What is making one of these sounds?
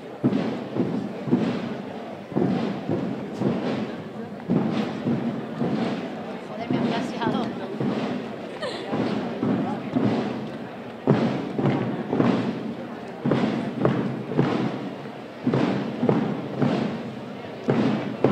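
Bearers' footsteps tread in a slow, steady rhythm on the street.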